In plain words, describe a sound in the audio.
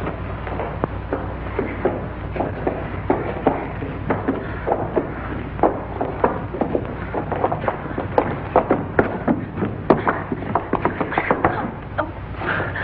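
Feet scuffle and stamp on a hard floor during a struggle.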